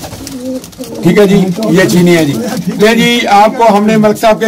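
Pigeons coo.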